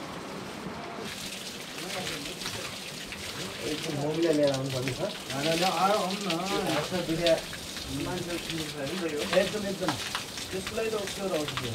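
Water pours from a spout and splashes onto stone.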